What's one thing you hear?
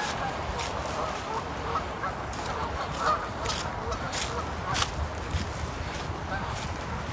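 Footsteps crunch on dry leaves outdoors.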